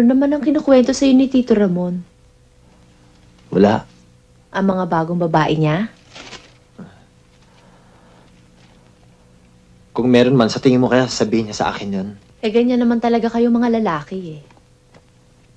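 A young man speaks in short bursts, close by.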